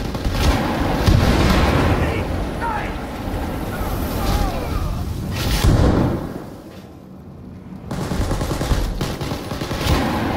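Explosions boom with deep rumbling blasts.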